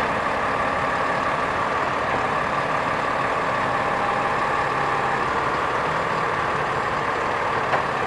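A garbage truck's hydraulic arm whines as it moves.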